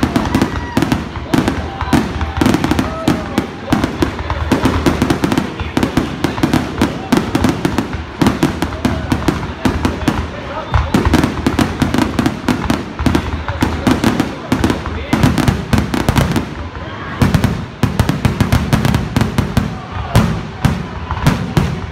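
Fireworks boom and crackle loudly in rapid bursts.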